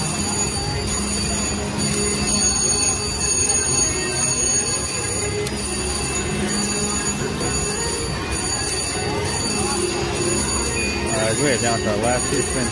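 A slot machine plays electronic chimes and jingles.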